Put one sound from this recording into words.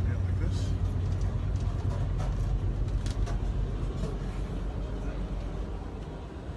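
An older man talks calmly close to the microphone.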